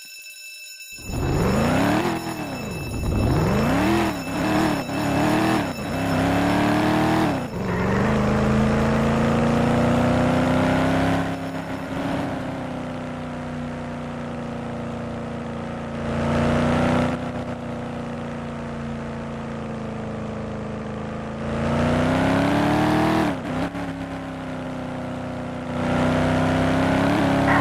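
A car engine revs hard, rising and dropping in pitch through gear changes.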